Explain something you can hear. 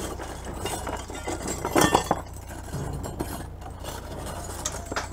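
Metal hardware clinks and rattles on wooden boards.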